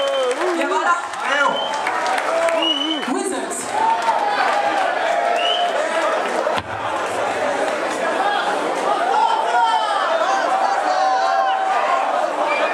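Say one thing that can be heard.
A woman sings into a microphone through a loudspeaker system in a large hall.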